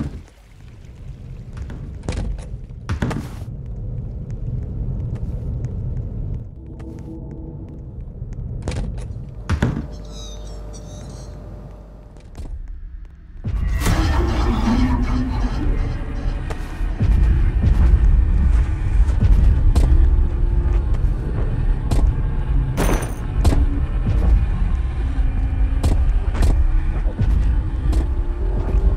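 Footsteps patter quickly across the floor.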